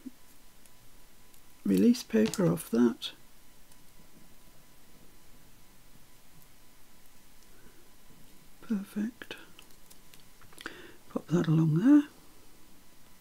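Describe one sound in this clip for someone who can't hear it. A small metal piece clicks softly as fingers work it into place.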